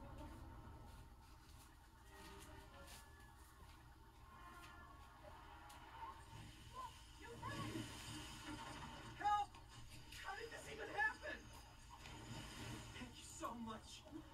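Video game sound effects and chiming pickups play through a television speaker.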